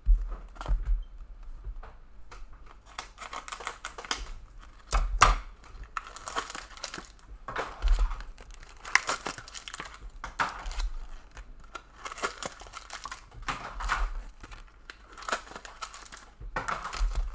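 Foil trading card wrappers crinkle and tear as packs are opened.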